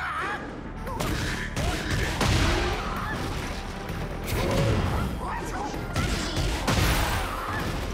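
Energy blasts whoosh and crackle.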